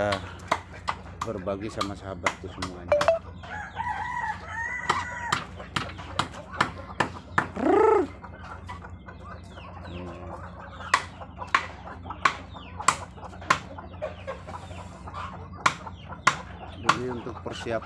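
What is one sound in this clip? Ducks and chickens cluck and call close by.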